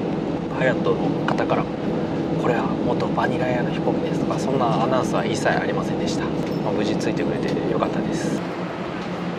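A young man talks calmly close to the microphone.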